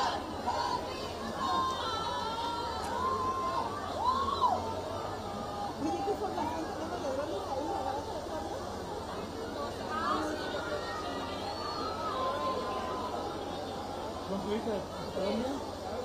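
A large outdoor crowd chatters and calls out with excitement.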